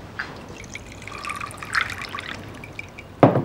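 Tea pours into a small cup with a thin trickle.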